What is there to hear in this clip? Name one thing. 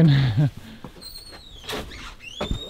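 A wooden door creaks on its hinges.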